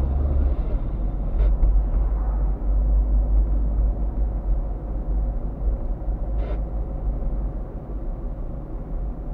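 A car engine hums steadily from inside the cabin as the car drives slowly.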